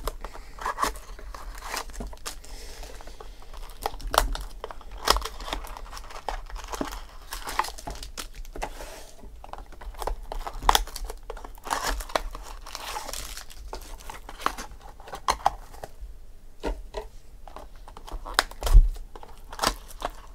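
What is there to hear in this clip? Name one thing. Boxes tap and knock on a table.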